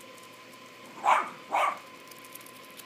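A dog barks twice nearby.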